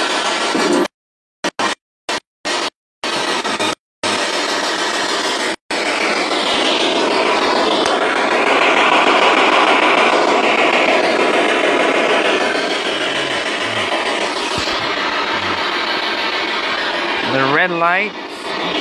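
A television plays loud, rushing sound nearby.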